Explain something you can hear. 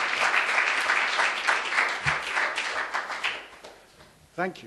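An audience claps in a room.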